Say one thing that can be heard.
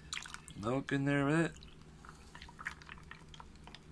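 Milk pours into a cup of ice.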